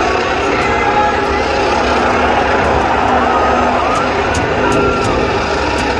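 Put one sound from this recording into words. Tyres squeal during burnouts.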